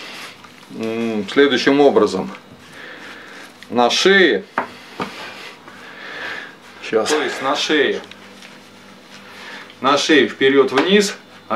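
A man talks close by in short bursts.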